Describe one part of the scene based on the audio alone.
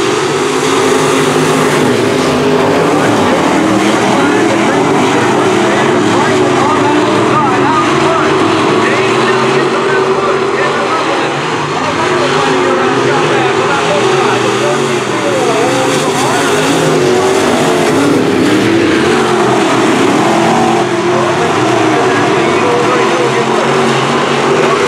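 Race car engines roar loudly and rev up and down.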